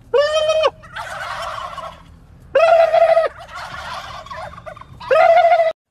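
A flock of turkeys gobbles loudly in a chorus.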